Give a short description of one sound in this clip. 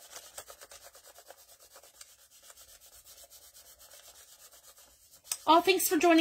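Hands rub and smooth paper with a soft, steady scratching.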